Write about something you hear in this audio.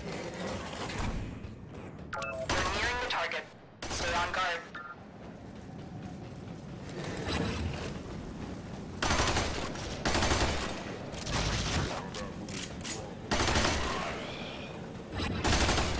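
Metal blades whoosh and clang in a fight.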